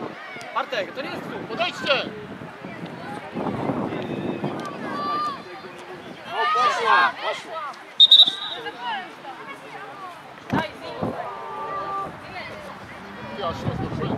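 Young women players shout and call to each other outdoors.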